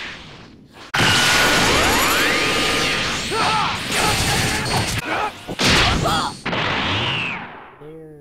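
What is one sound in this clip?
Energy blasts roar and crackle loudly.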